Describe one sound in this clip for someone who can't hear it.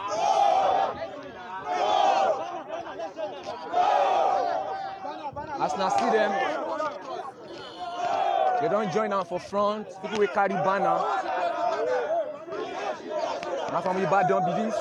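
A crowd of men and women chants loudly in rhythm outdoors.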